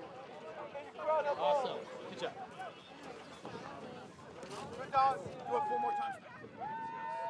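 Young women talk and laugh excitedly nearby.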